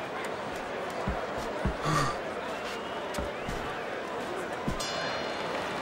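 Gloved punches land with dull thuds.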